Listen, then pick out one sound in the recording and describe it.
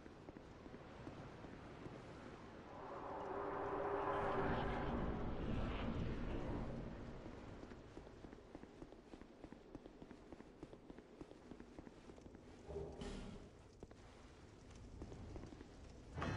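Footsteps run quickly across stone.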